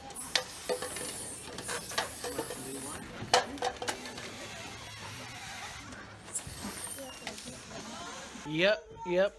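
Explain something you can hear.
Plastic cups clatter as they are stacked and knocked together.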